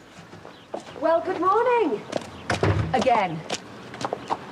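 A woman speaks with animation outdoors.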